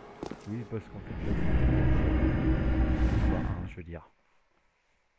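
A loud, shimmering magical whoosh swells and then cuts off abruptly.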